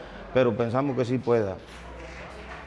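A middle-aged man speaks close to a clip-on microphone.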